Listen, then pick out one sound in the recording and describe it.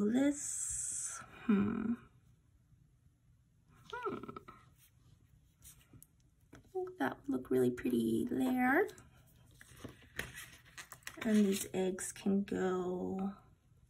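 Sticker sheets rustle and peel as hands handle them.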